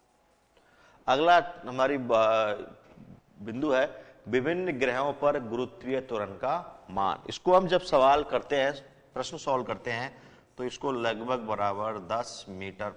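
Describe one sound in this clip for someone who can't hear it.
A man explains with animation, close to a microphone.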